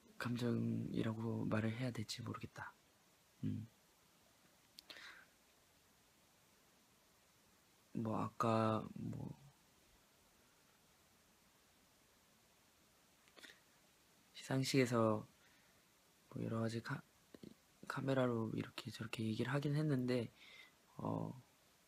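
A young man speaks softly and close to a phone microphone, in short bursts with pauses.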